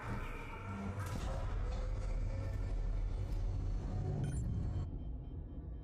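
A heavy metal door slides open with a low rumble.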